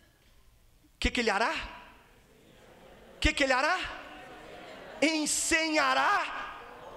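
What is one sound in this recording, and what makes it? A man preaches loudly with animation through loudspeakers in a large echoing hall.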